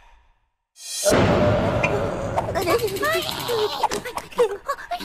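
A cartoon boy screams in fright.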